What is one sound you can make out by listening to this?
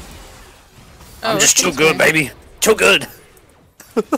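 Magic spells crackle and whoosh during a fast battle.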